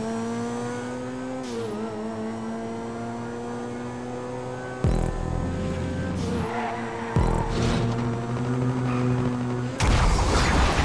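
A car engine revs steadily, rising in pitch as it speeds up.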